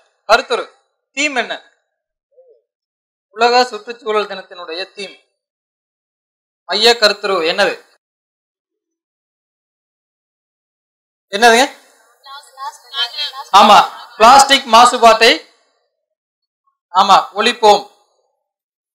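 A man speaks into a microphone over a loudspeaker, in short bursts with pauses, outdoors.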